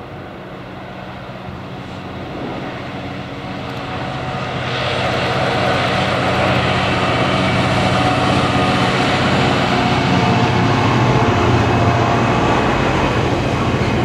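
A diesel freight locomotive approaches and passes with a deep engine drone.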